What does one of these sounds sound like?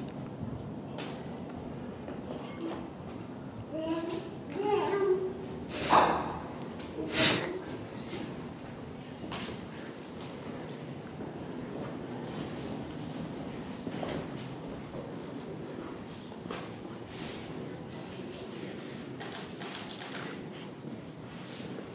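Small clicks and knocks sound from a table.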